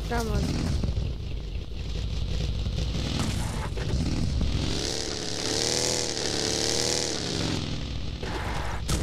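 A small buggy engine revs and whines as it drives.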